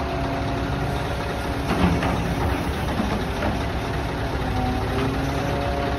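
A grab bucket scoops into a pile of grain with a scraping rush.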